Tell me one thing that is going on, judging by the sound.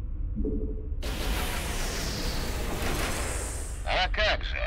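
Gunfire and blasts crackle in a battle.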